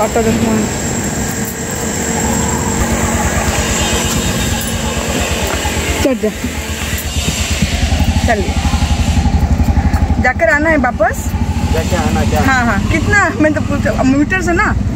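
An auto-rickshaw engine rattles and throbs steadily close by.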